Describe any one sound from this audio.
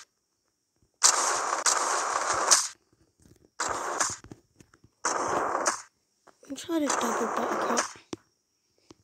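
Scooter wheels roll and grind on concrete in repeated short bursts.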